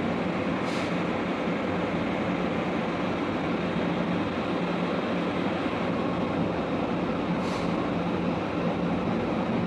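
Heavy machinery drones steadily and loudly nearby.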